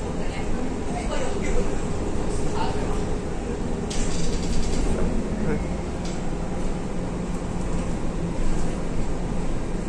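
A bus engine rumbles steadily while the bus drives along.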